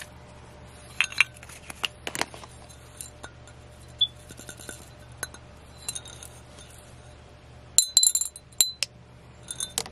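Fingernails tap on a ceramic cup.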